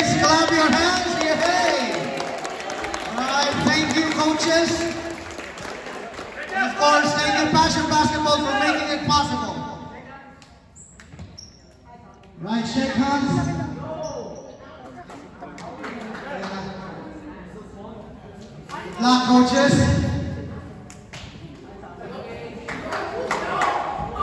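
Young boys talk and call out in a large echoing hall.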